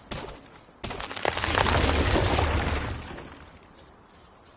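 A tree crashes down with a heavy, rushing rumble.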